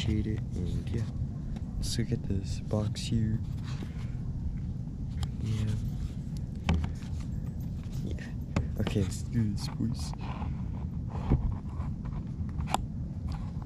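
A cardboard box is handled and set down on a wooden table.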